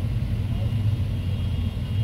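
An auto-rickshaw drives past.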